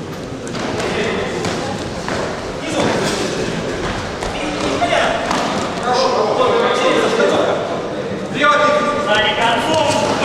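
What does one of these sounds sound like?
Gloved fists thud against padding.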